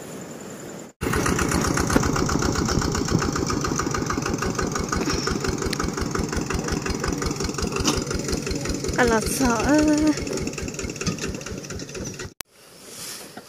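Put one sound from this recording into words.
A tractor engine chugs loudly and steadily.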